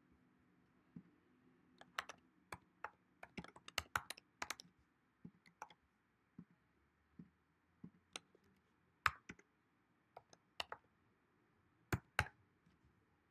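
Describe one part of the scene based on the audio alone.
Keys click on a computer keyboard in quick bursts.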